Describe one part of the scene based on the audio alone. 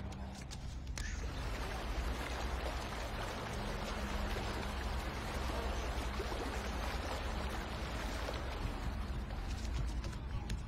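A child wades through shallow water.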